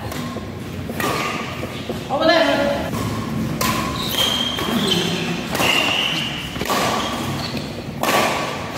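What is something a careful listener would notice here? Badminton rackets strike a shuttlecock back and forth in an echoing hall.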